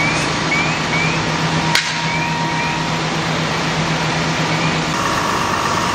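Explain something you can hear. A large fire roars and crackles.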